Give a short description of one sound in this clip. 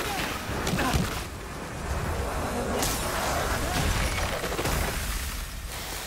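Fiery magic blasts burst and crackle loudly.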